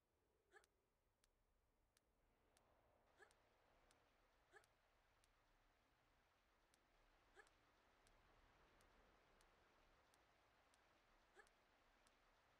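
A woman grunts with effort.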